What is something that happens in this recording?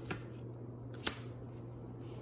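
A playing card is set down with a light tap on a hard tabletop.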